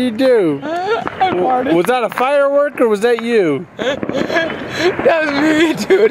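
A teenage boy laughs and talks nearby.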